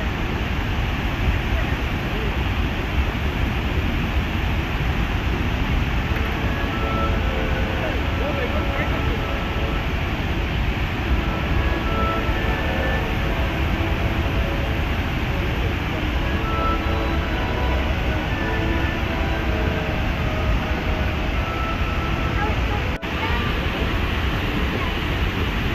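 A waterfall roars heavily and steadily nearby, outdoors in the open air.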